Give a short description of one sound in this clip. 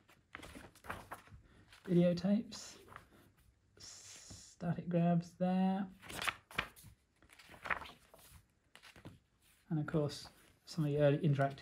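Paper pages rustle and flip as a book's pages are turned.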